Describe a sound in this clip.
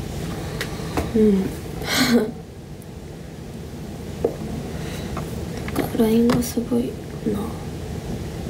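A young woman speaks softly and briefly, close by.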